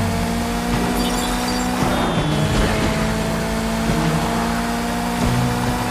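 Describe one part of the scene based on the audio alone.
Tyres squeal on the road.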